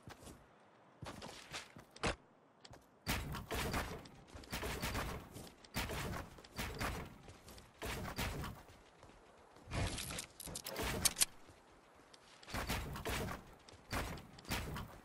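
Building pieces snap into place with quick thuds in a video game.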